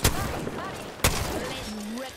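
A rifle fires a burst.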